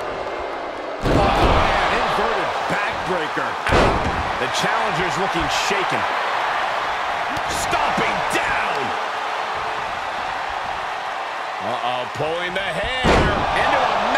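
A wrestler slams heavily onto the ring mat with a thud.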